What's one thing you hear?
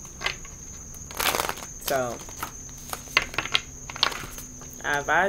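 Playing cards shuffle and slap together.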